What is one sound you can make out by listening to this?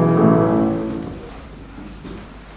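A piano chord rings out and slowly fades away.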